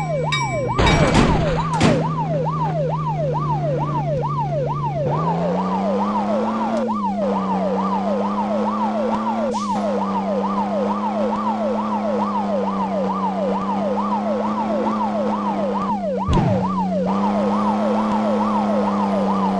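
A car engine hums steadily and rises in pitch as it speeds up.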